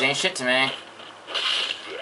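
A sword swings and strikes.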